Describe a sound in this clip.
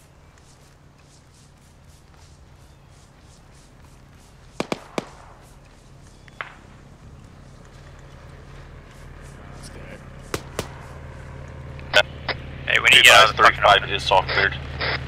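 Footsteps tread steadily over dry grass and dirt.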